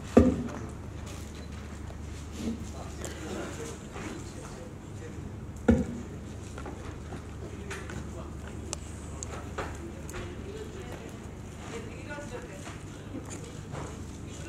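Several men and women chatter faintly in a large room.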